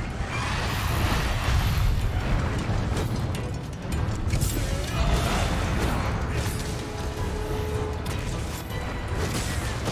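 Heavy blows strike and thud against a large creature.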